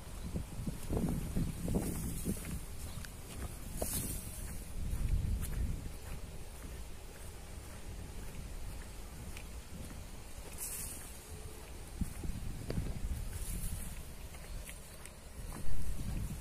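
Wind blows in gusts outdoors, rumbling low.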